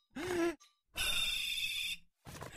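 A man whistles loudly through his fingers.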